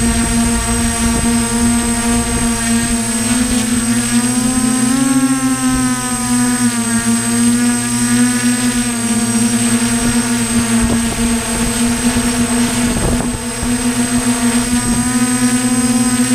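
A drone's motors whine steadily and shift in pitch as it climbs.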